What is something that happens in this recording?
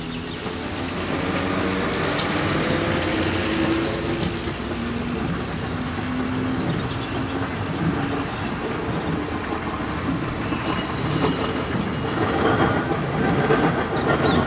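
Train wheels clatter over the rails as carriages roll by.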